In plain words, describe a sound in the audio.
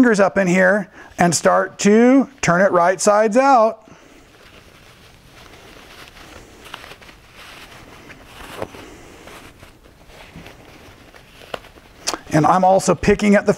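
Fabric rustles softly as hands fold it.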